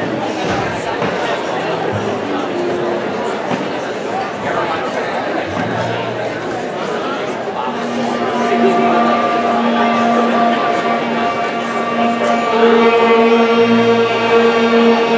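A big band plays in a large echoing hall.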